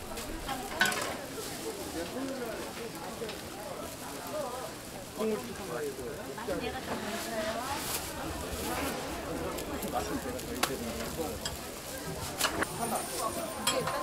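Pancakes sizzle in oil on a hot griddle.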